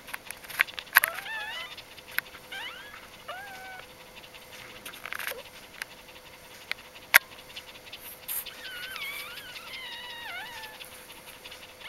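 Newborn puppies whimper and squeak in high, wavering cries.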